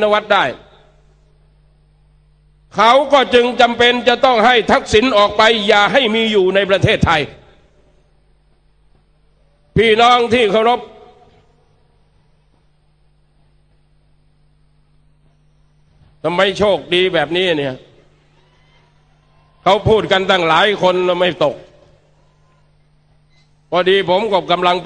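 A middle-aged man gives a speech with passion through a loudspeaker, pausing between phrases outdoors.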